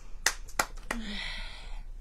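A young boy claps his hands.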